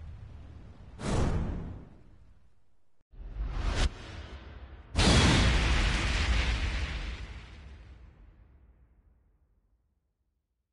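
A deep boom bursts out and rumbles away.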